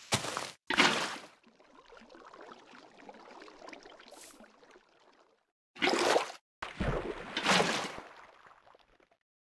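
Water splashes in short bursts as a bucket is emptied, then trickles and flows.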